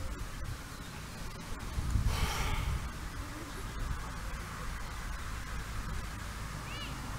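Wind blusters across an open outdoor space.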